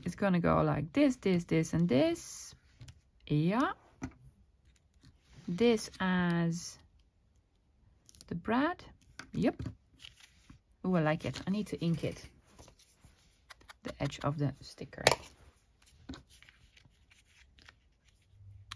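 Paper rustles softly under hands.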